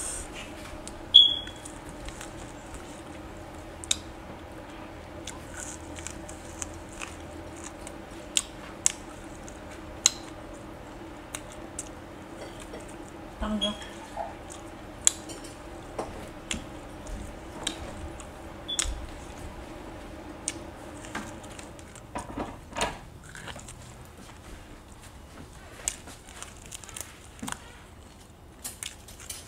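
A woman chews and crunches food close to a microphone.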